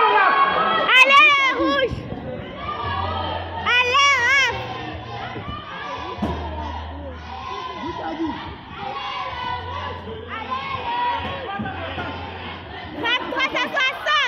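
Young children shout sharply as they spar.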